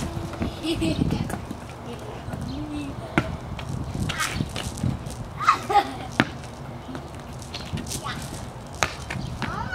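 Young children shout and chatter outdoors.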